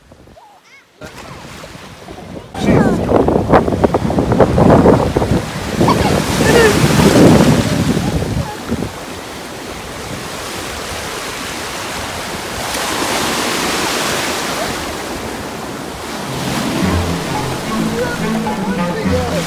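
Waves wash and break on the shore.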